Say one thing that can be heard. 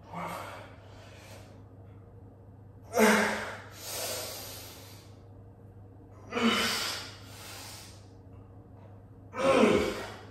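A young man exhales hard and loudly, close by, with each lift.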